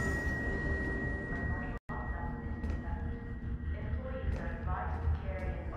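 Footsteps tap on a metal floor.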